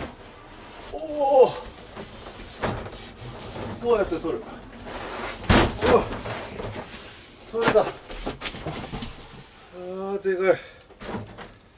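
A man talks in short bursts nearby.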